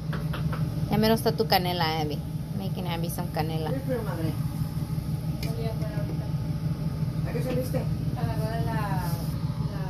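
Water bubbles at a rolling boil in a pot.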